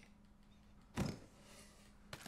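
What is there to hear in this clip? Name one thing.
A wooden box lid clunks open.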